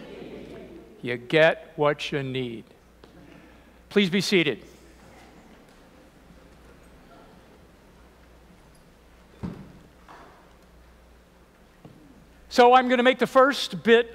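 An elderly man speaks calmly through a microphone in an echoing room, with long pauses.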